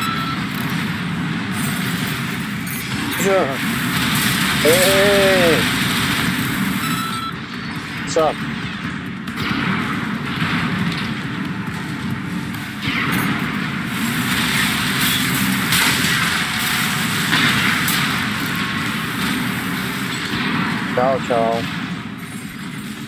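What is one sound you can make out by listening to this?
Heavy gunfire and explosions boom and rattle.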